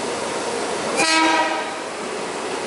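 A train horn sounds with a short blast.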